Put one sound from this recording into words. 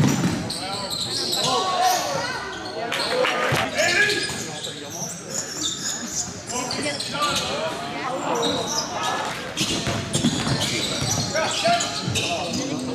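Spectators cheer and shout in a large echoing hall.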